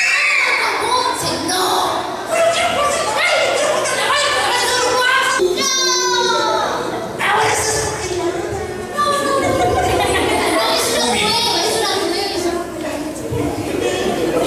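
Children cheer and shout together.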